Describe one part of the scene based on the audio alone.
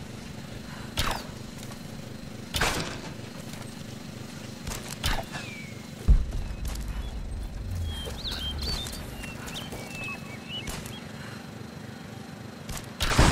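Arrows release from a bow with sharp twangs.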